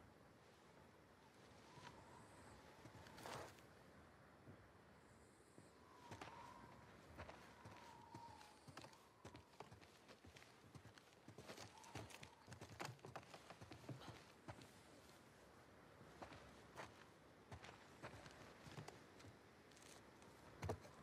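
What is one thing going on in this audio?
Footsteps creak across a wooden floor.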